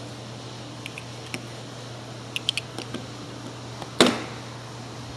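Small metal parts click and clatter.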